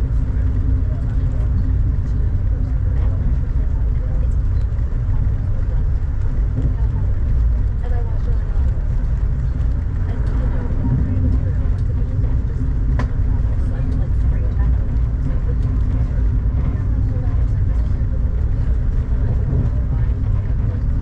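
Rain patters against a train window.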